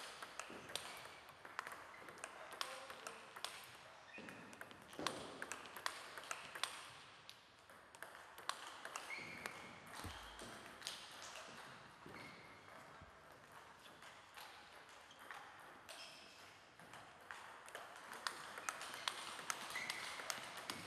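A table tennis ball clicks rapidly back and forth off paddles and a table.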